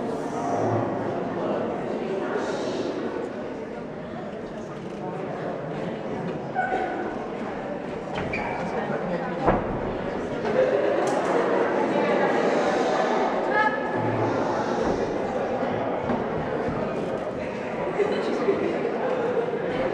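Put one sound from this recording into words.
Young teenagers talk and call out on a stage, in a large echoing hall.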